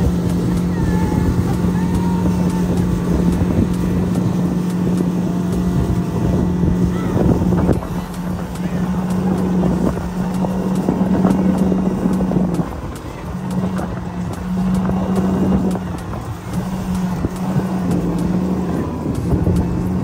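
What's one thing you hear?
A boat engine drones steadily at speed.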